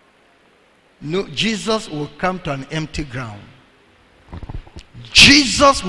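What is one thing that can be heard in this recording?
A man speaks with animation through a microphone, heard over loudspeakers in a large room.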